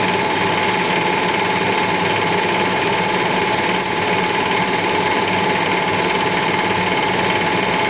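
A metal lathe spins with a steady whirring hum.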